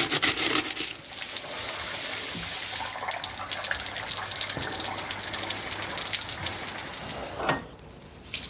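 Water splashes and sprays steadily.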